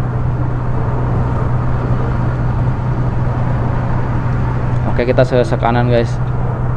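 A bus engine hums steadily while driving at speed.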